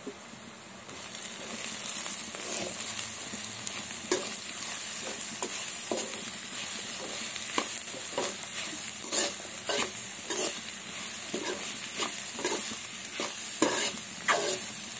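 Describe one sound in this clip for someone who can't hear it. A spatula scrapes and stirs food in a metal pan.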